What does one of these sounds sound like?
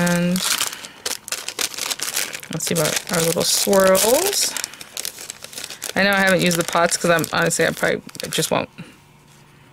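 Paper pieces rustle and crinkle as they are handled.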